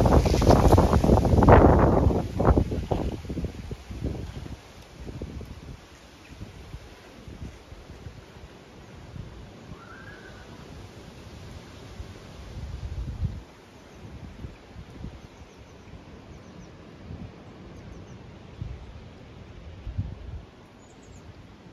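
Wind gusts across a microphone outdoors.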